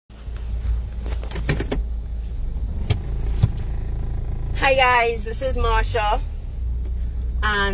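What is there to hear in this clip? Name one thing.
A car engine hums steadily, heard from inside the car.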